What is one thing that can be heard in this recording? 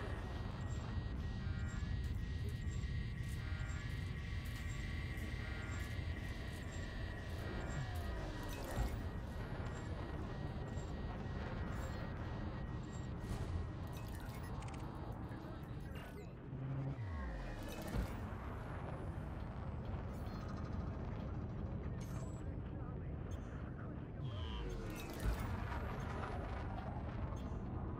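A spaceship engine rumbles steadily.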